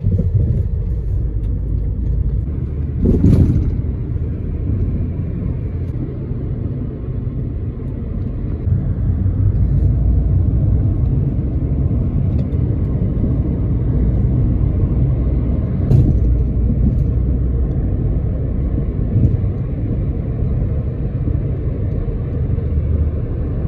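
Tyres roll over the road with a low steady roar.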